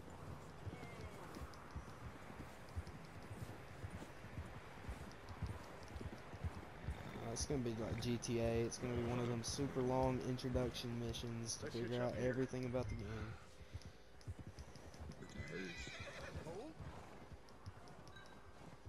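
Horses' hooves thud steadily through snow.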